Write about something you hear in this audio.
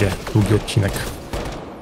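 A rifle fires a sharp shot.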